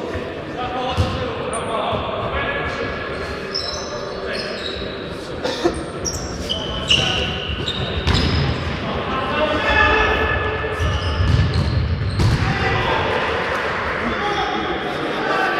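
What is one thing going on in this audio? A futsal ball is kicked and thuds in an echoing sports hall.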